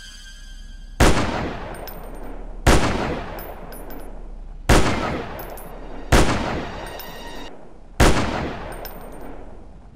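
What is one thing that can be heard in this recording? A rifle fires loud, echoing shots one after another.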